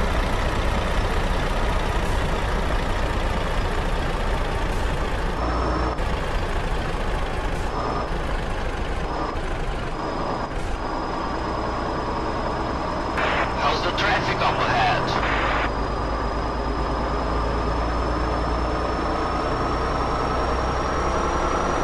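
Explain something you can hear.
A truck engine rumbles steadily as the truck drives along a road.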